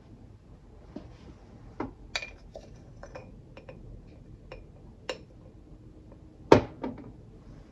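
A wooden spoon scrapes ground coffee in a glass jar.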